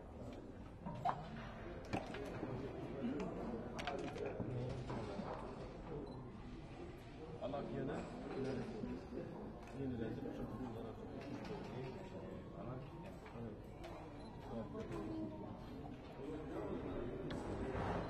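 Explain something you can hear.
Game pieces click onto a wooden board.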